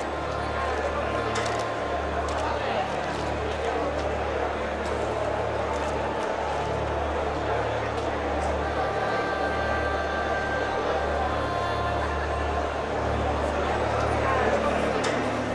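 A large crowd murmurs and roars in an open arena.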